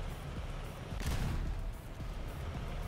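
A tank cannon fires with a heavy boom.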